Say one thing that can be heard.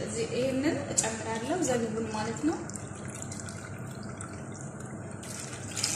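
Thick liquid pours and splashes into a metal pot.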